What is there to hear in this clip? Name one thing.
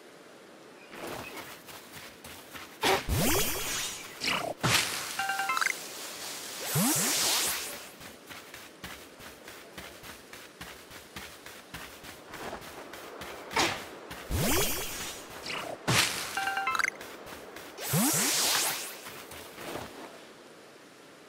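Quick footsteps run through grass and over dirt.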